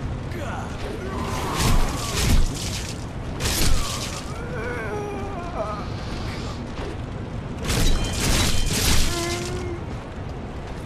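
A creature groans and cries out in pain.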